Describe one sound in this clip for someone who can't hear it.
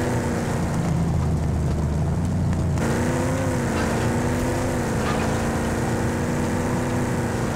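A vehicle engine rumbles and hums steadily as it drives over rough ground.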